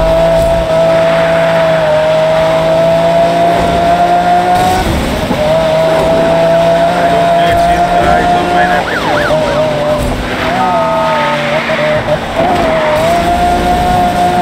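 A sports car engine roars at high speed, its pitch shifting as gears change.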